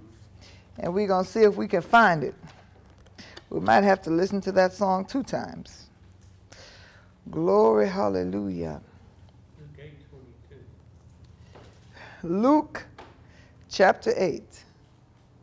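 A woman speaks calmly into a microphone, pausing between phrases.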